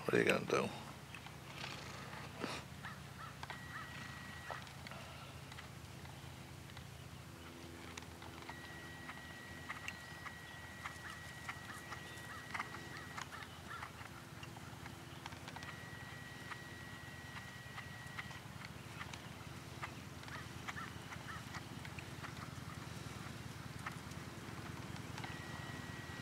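A horse's hooves thud softly on grass in a steady trotting rhythm.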